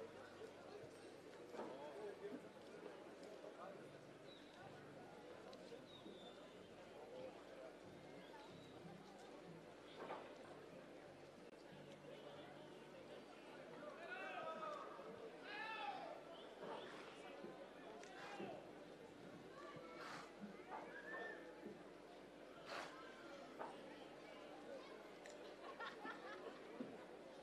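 A crowd murmurs and chatters in a large open stand.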